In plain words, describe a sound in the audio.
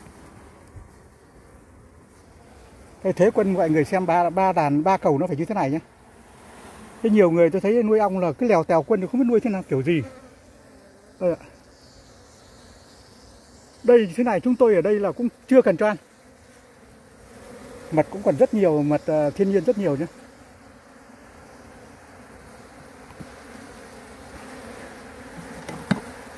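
Honeybees buzz softly at close range.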